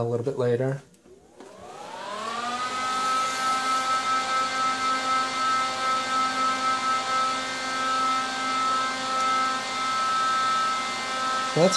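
Small cooling fans spin up and whir with a steady hum.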